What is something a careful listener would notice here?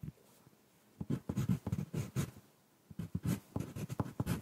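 A pencil scratches and taps on paper close up.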